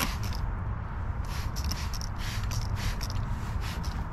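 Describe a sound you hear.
A spray bottle squirts in short hissing bursts.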